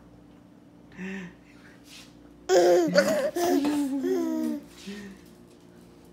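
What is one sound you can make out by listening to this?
A toddler squeals and babbles happily, close by.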